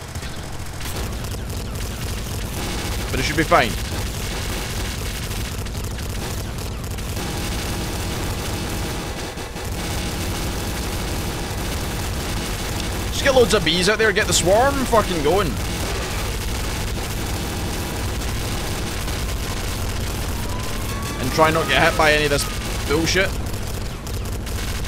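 Video game explosions rumble steadily.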